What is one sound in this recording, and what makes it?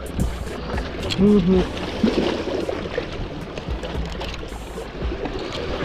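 A knife scrapes and cuts through a fish.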